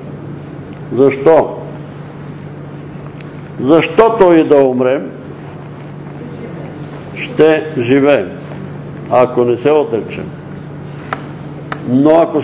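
An elderly man speaks slowly and deliberately, in pauses, in a room with slight echo.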